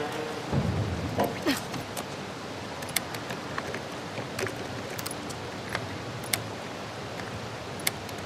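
A metal latch on a case clicks and rattles.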